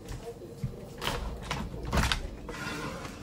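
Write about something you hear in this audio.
Window blinds rustle and rattle.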